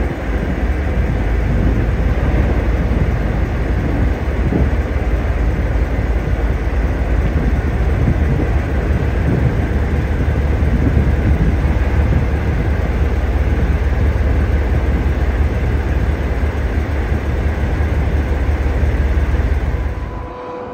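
A locomotive's wheels roll slowly over rails.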